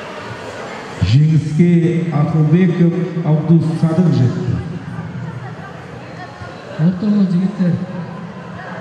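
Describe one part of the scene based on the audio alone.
A man speaks loudly nearby, as if over a loudspeaker.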